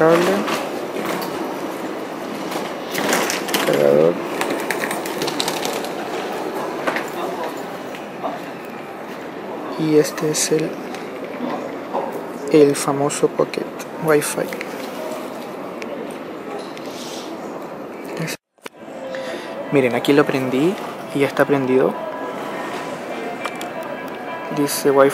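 Items rustle and clack softly as they are handled on a fabric bag.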